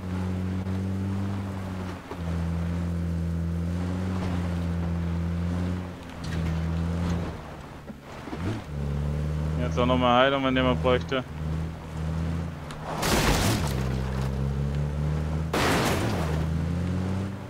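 A vehicle engine drones steadily and changes pitch as it speeds up and slows down.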